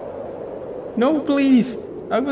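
A man speaks pleadingly, briefly.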